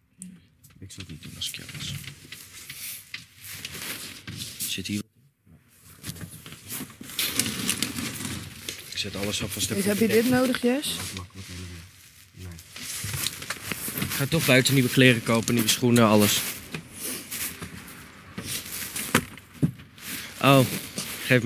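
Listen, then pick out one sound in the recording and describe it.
Clothes and bags rustle close by.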